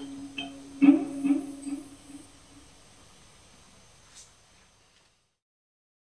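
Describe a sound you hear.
Electronic instruments hum and crackle with experimental sounds.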